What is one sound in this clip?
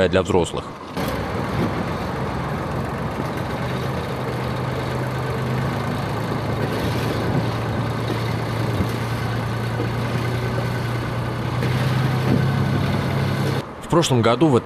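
A loader's diesel engine idles with a steady low rumble.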